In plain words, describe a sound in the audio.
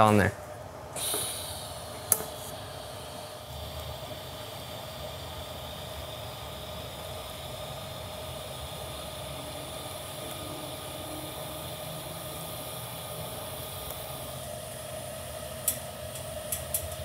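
A welding torch buzzes and hums steadily.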